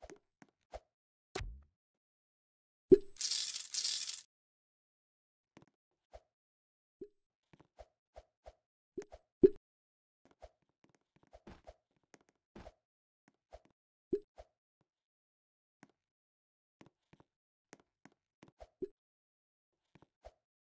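A game character's footsteps tap softly and unevenly.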